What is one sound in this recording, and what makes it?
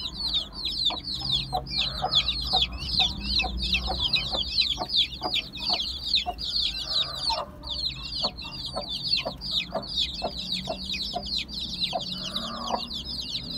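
A hen clucks softly in low bursts.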